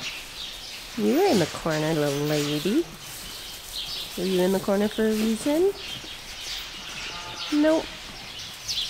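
Sheep bleat loudly nearby, several times.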